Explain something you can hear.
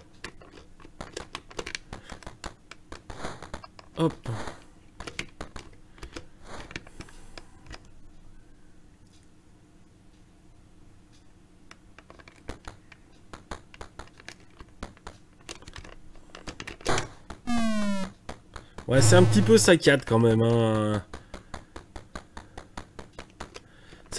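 Short, rapid clicks tick from a retro video game as a character moves.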